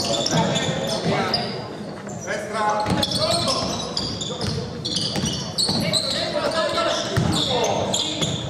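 Sneakers squeak on a hardwood court in an echoing hall.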